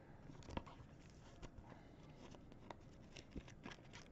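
A card slides into a stiff plastic holder.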